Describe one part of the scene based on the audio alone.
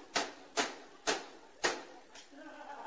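Drumsticks strike a drum in sharp hits.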